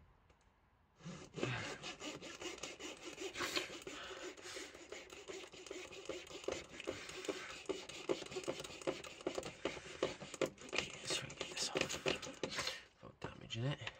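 A blade scrapes rapidly across plastic.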